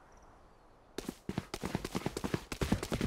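Footsteps tap on a stone floor in a video game.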